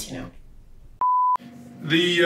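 A steady high beep sounds.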